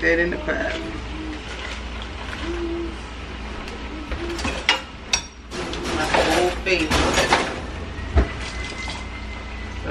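Food sizzles gently in a pot.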